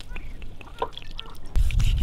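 Water splashes as it is poured from a glass.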